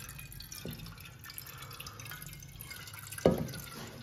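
Water runs into a steel pot.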